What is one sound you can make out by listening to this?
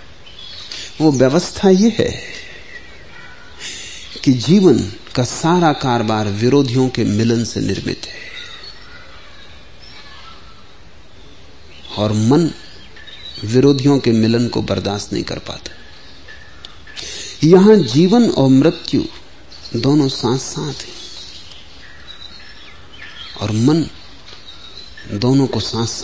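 An older man speaks slowly and deliberately, with long pauses.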